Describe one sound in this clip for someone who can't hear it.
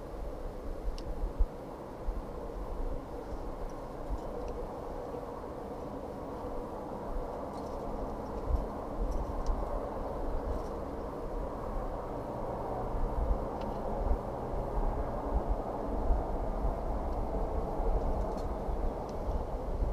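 Climbing gear clinks and jingles softly on a climber's harness.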